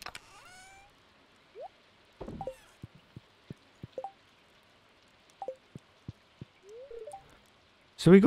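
Short game menu blips and chimes sound as items are picked.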